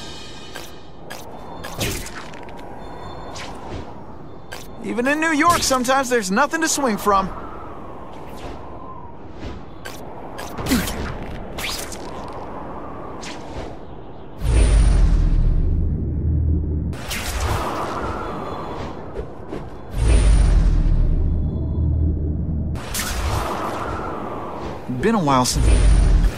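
Air rushes and whooshes past in loud swells, again and again.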